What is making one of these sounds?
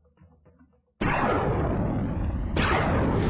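A laser blast fires and hits a shield.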